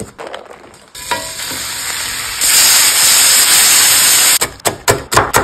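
Bacon sizzles loudly in a hot pan.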